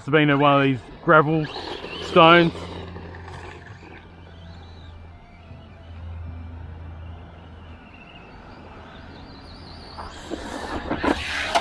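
Small tyres crunch over loose gravel.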